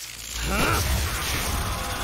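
Electricity crackles and buzzes loudly.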